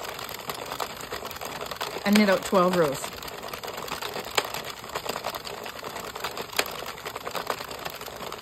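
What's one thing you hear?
A plastic knitting loom clicks and rattles as it is cranked.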